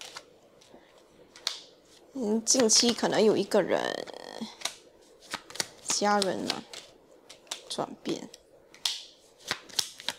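Playing cards slide and tap softly onto a table.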